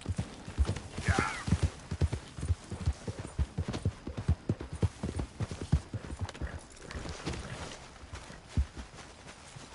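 A horse's hooves thud quickly on soft ground.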